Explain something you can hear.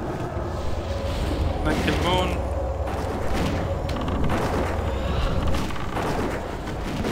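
Spell effects crackle and boom in a fantasy battle.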